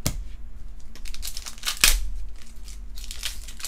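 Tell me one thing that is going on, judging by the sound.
A foil card pack crinkles as it is handled.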